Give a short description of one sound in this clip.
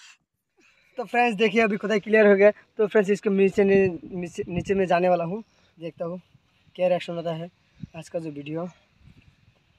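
A young man talks close by in a calm, explaining voice.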